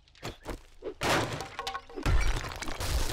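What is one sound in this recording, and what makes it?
Concrete blocks crack and crumble under a heavy blow.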